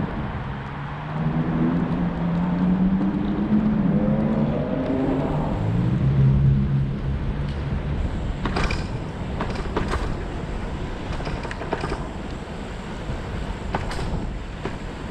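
Tyres roll steadily along a road.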